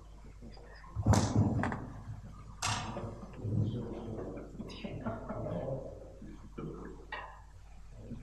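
A man speaks into a microphone in a large echoing room.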